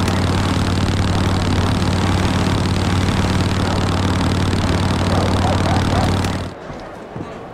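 A motorcycle engine drones while riding along a dirt track.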